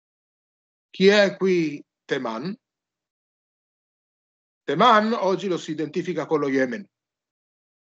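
An older man speaks calmly over an online call, pausing between phrases.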